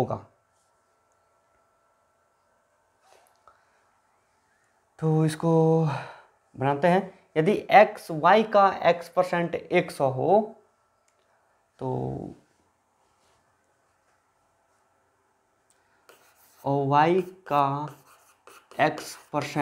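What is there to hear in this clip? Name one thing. A man explains calmly and clearly, close by, with pauses.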